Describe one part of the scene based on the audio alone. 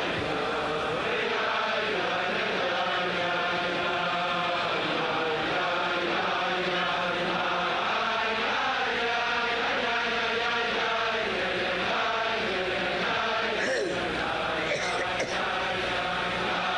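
A large crowd of men sings together loudly.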